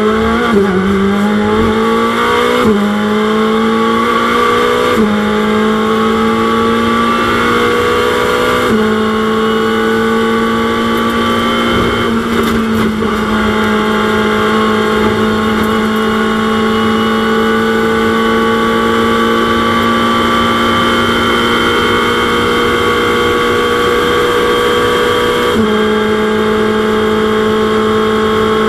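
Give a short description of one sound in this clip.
A racing car's engine roars loudly and shifts up through the gears.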